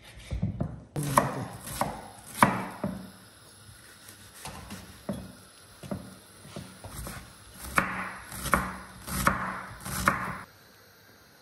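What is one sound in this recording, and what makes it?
A knife chops on a wooden board.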